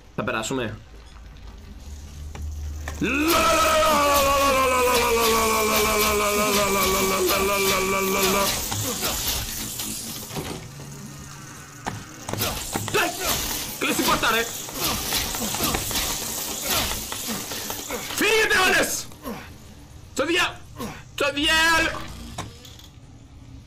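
A young man speaks and shouts with animation into a close microphone.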